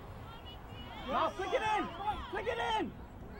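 Young girls shout loudly on a playing field.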